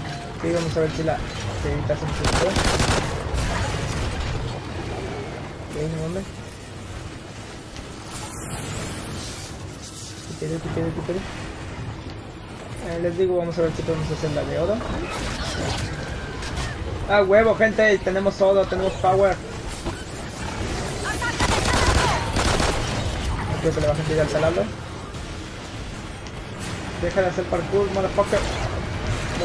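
Monsters shriek and growl close by.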